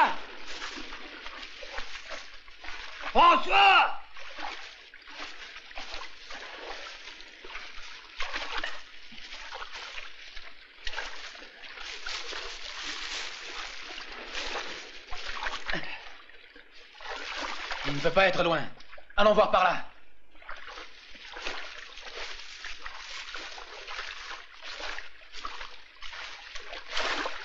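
Tall grass rustles and swishes as men push through it.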